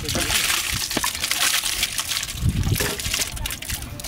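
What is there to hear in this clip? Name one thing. A thick stew slops wetly into a large metal pot.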